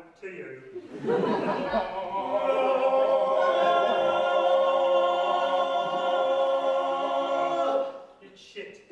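A group of young men and women sing together in harmony, sustaining a long chord.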